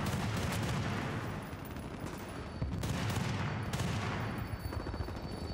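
Gunshots fire rapidly and echo loudly.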